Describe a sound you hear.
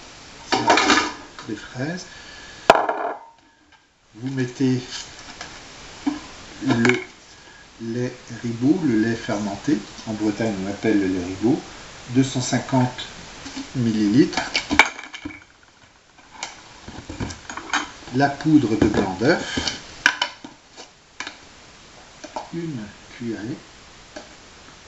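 A middle-aged man talks calmly close by.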